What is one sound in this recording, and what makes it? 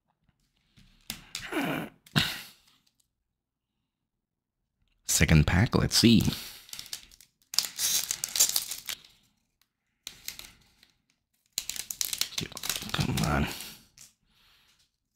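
A foil card pack crinkles as it is handled.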